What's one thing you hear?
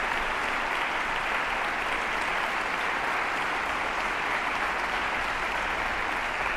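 Applause rings out in a large echoing hall.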